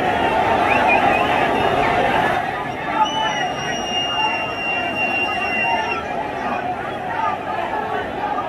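A large crowd of men shouts and chants outdoors.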